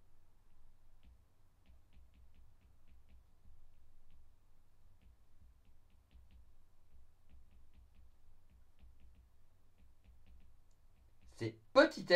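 A pen taps and scratches softly on a tablet.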